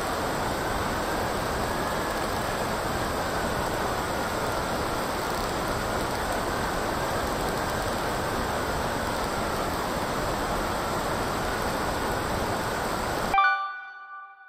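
Wind and water rush past a hydrofoil racing catamaran at speed.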